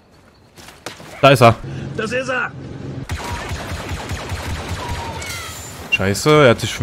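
Gunfire blasts in quick bursts.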